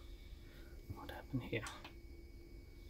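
A button clicks under a finger press.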